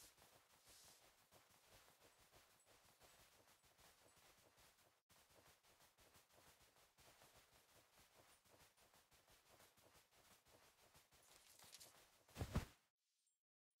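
Light footsteps patter quickly across a hard floor.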